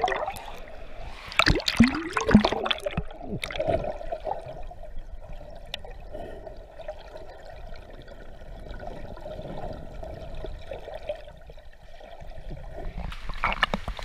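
Water rushes and bubbles, heard from underwater.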